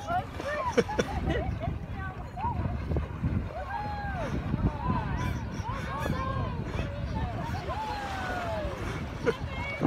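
Water splashes as people run into the sea.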